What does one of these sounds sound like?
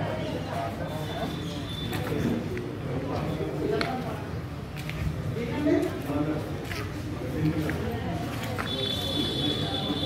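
Several men talk in the distance.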